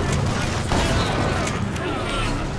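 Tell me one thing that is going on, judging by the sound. A gun fires with a loud bang.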